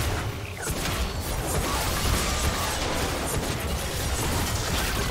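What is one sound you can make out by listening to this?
Video game spell effects crackle and boom during a fight.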